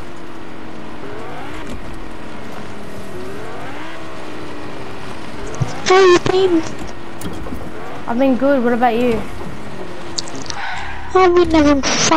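A sports car engine hums as it drives.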